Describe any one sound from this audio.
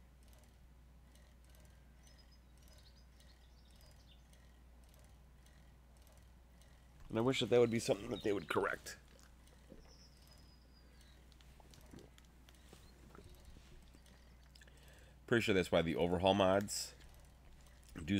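A bicycle rolls over grass.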